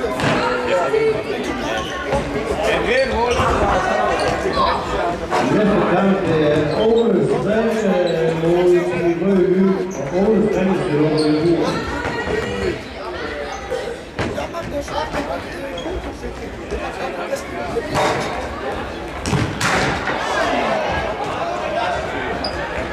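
Players' shoes squeak and thud on a hard floor in a large echoing hall.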